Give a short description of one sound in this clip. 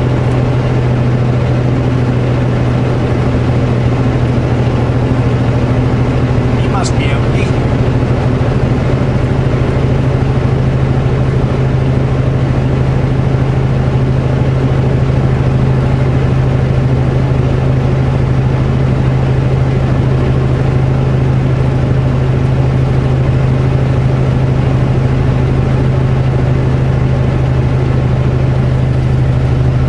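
A truck engine drones steadily with a low hum from inside the cab.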